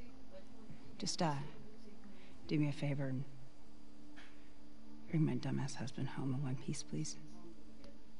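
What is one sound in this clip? A woman speaks calmly with a wry tone.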